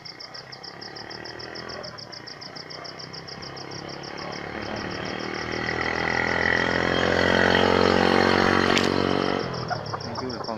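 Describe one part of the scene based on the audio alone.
A hen gives a long, loud call that swells and then stops.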